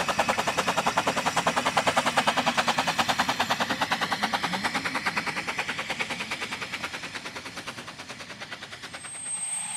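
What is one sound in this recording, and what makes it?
A steam locomotive chuffs rapidly and fades into the distance.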